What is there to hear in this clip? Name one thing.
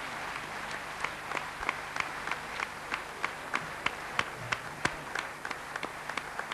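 An audience claps in steady rhythm together.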